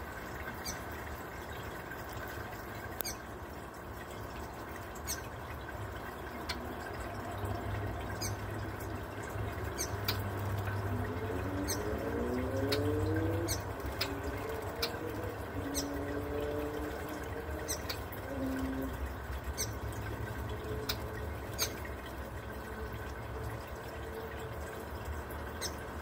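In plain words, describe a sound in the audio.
Water from a small fountain trickles and bubbles steadily.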